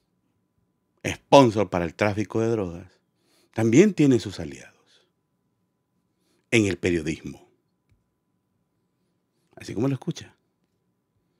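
A middle-aged man speaks with animation into a close microphone, in short bursts with pauses.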